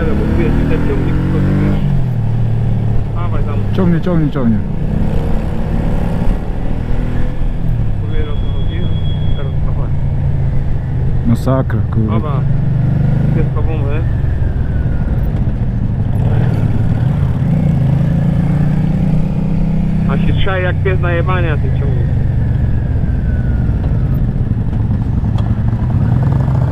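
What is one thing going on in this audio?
A motorcycle engine rumbles up close, its pitch rising and falling as it changes speed.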